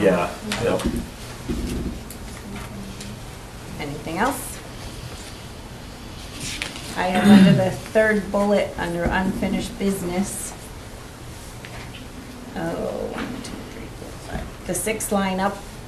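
A man speaks calmly through a room microphone, heard at a distance.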